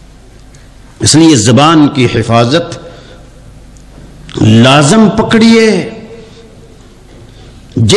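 A man chants loudly and melodically into a microphone, heard through a loudspeaker.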